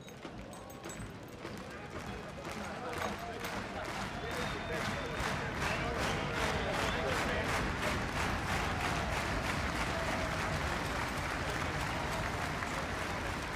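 A crowd claps in rhythm.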